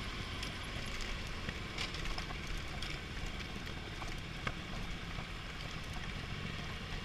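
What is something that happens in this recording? Gravel crunches and pops under tyres.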